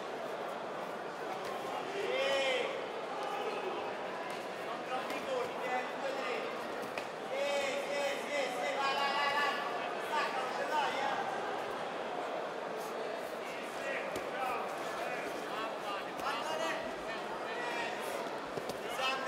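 A crowd of spectators shouts and cheers in an echoing hall.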